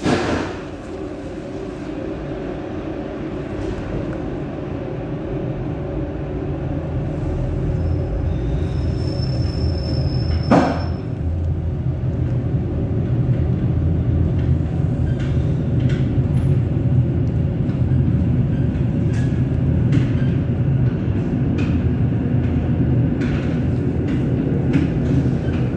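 A train rumbles steadily along the tracks, growing louder as it gathers speed.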